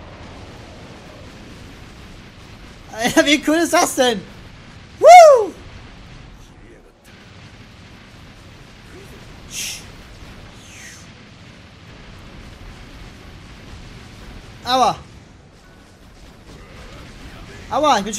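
Lightning cracks sharply several times.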